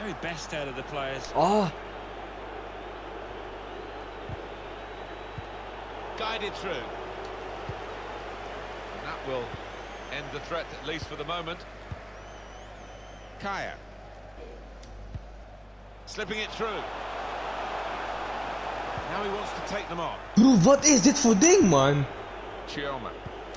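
A football is kicked with short dull thumps.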